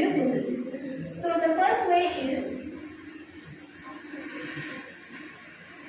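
A young woman speaks into a microphone, heard through a loudspeaker in an echoing room.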